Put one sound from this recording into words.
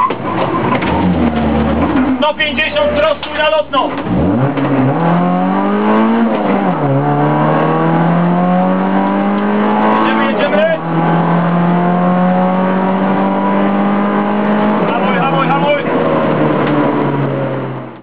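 A car engine hums and revs up through the gears as the car drives along.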